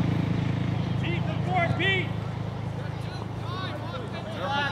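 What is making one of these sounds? Young boys shout out on a playing field.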